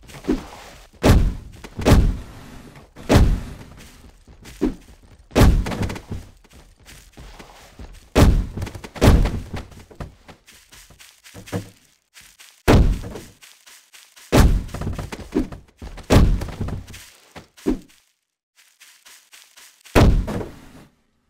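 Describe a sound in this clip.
Heavy blows land with loud thuds, again and again.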